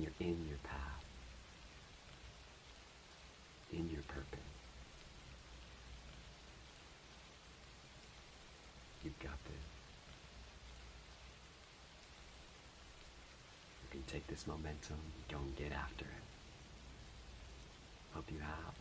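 A man speaks calmly and softly, close to a microphone, with long pauses.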